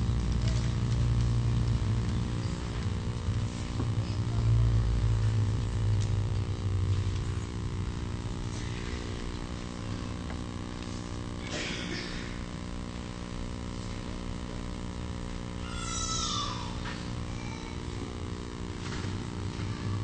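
A man speaks quietly in a large echoing hall.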